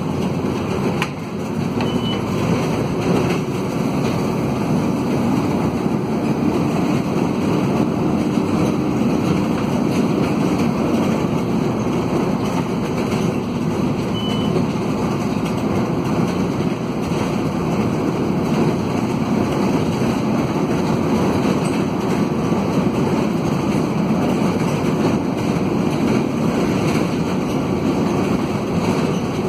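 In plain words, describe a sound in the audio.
A diesel minibus engine drones under load, heard from inside the bus as it climbs a hill.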